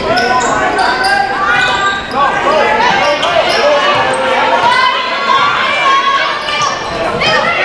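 Sneakers squeak sharply on a hard court, over and over.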